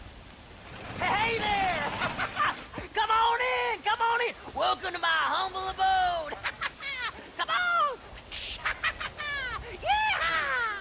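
A man calls out loudly and with animation, heard up close.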